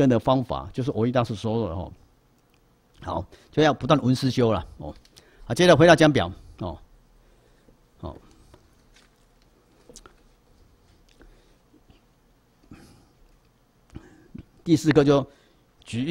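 An elderly man speaks calmly and slowly into a microphone, with long pauses.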